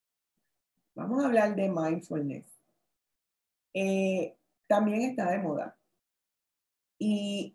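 A woman speaks calmly through an online call microphone, in short phrases with pauses.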